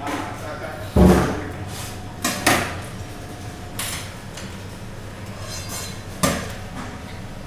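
Fish flesh thumps and slaps onto a cutting board.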